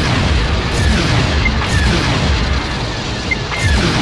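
Laser cannons fire in quick bursts.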